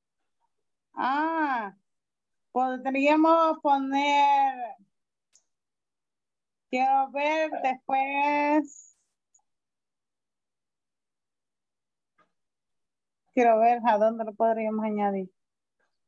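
A woman speaks with animation through an online call, in short phrases with pauses.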